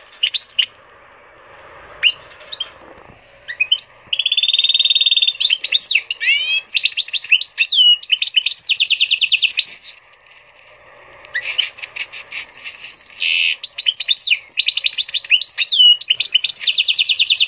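A goldfinch and canary hybrid sings a fast run of trills and twitters.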